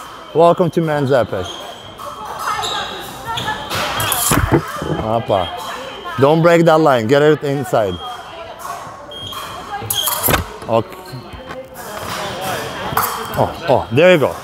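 Fencing blades clash and scrape.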